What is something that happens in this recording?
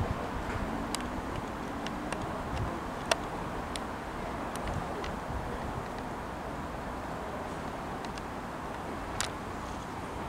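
Train wheels click over rail joints and points.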